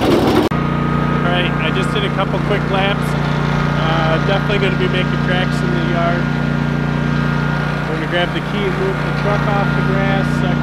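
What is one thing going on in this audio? A man talks with animation close by, over the engine's drone.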